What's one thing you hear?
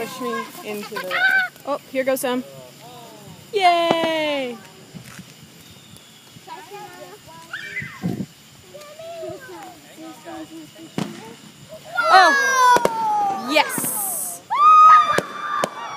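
Fireworks bang and crackle in the distance outdoors.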